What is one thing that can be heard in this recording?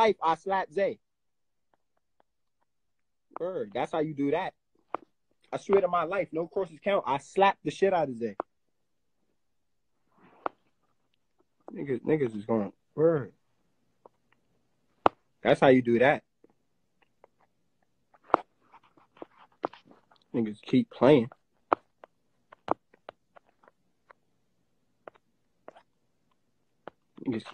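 A young man talks close to a phone microphone, casually and in bursts with pauses.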